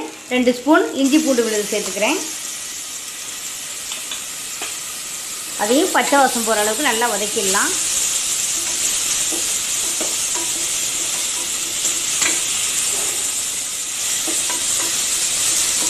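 Food sizzles and hisses in a hot pot.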